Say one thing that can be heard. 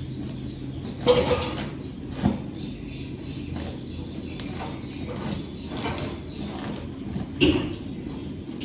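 A wooden door bumps and knocks as it is pushed.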